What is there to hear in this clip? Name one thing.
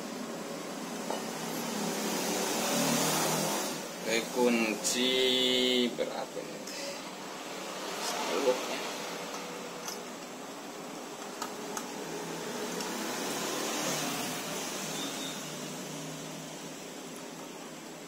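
Metal parts of a pump clink and knock as hands handle them.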